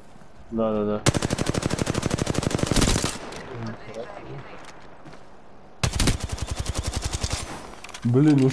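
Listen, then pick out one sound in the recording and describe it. Rapid automatic gunfire rattles in quick bursts.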